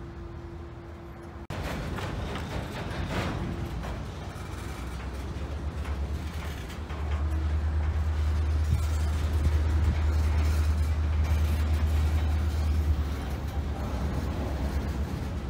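A railroad crossing bell rings steadily.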